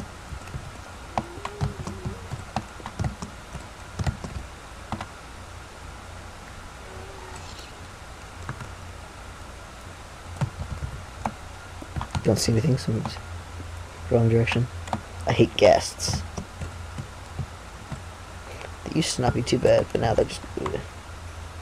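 Pickaxe blows chip rapidly at blocks of stone.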